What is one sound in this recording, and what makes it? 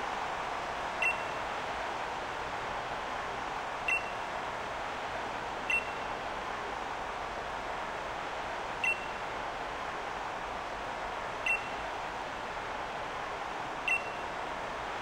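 A short, high chime sounds now and then.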